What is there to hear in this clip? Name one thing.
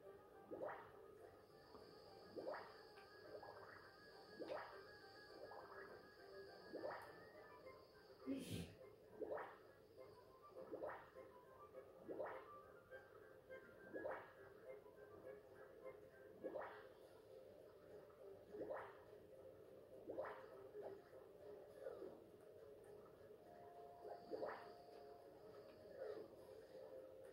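Swooshing game sound effects sweep down again and again from a television.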